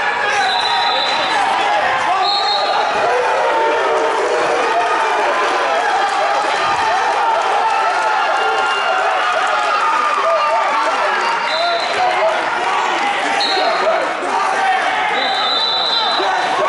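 A crowd of spectators murmurs and chatters throughout a large echoing gym.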